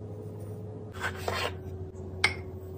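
Coffee grounds pour into a ceramic jar.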